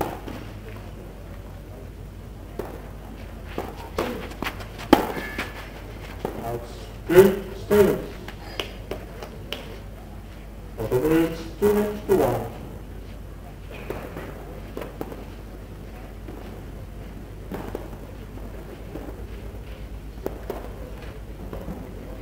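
Spectators murmur softly outdoors.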